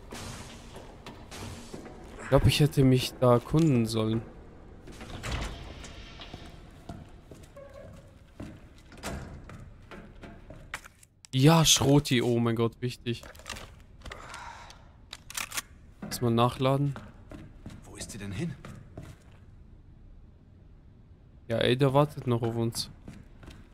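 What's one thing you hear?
Footsteps clank on metal stairs and thud on a hard floor.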